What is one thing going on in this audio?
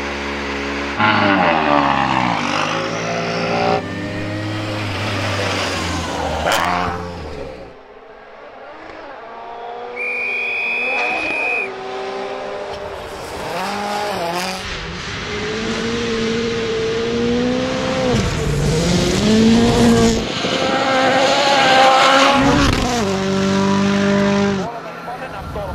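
A rally car engine roars and revs hard.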